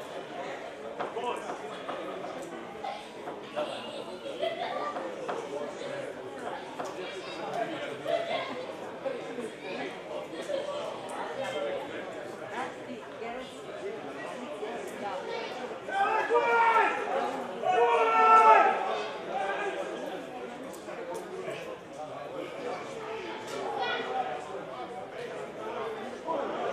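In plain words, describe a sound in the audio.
Men shout to each other outdoors across an open field.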